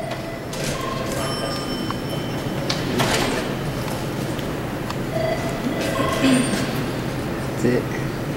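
A man speaks calmly nearby in a large echoing hall.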